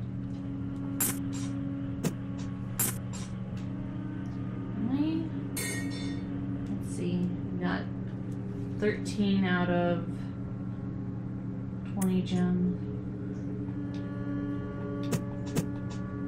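Short electronic menu beeps sound now and then.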